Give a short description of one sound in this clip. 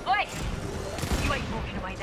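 A heavy gun fires rapid shots.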